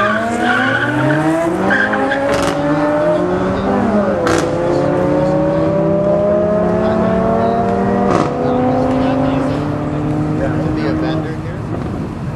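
Car engines roar and rise in pitch as they accelerate hard, shifting gears.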